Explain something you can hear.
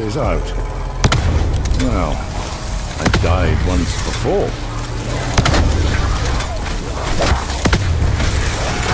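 A gun fires sharp blasts.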